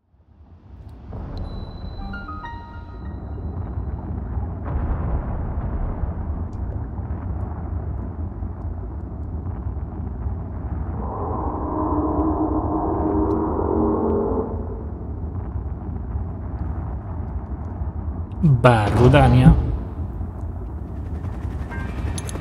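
A volcano rumbles low and steadily.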